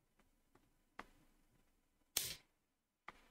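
A wooden game piece clicks down onto a board.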